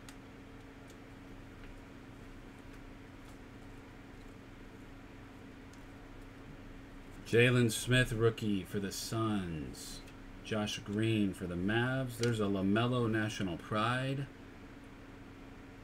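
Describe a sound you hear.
Trading cards rustle and slide between fingers close by.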